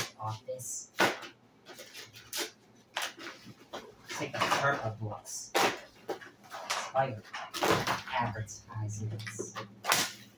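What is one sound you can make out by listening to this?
Cardboard boxes tear and rip.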